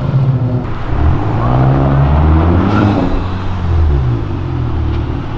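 A car engine revs up and down.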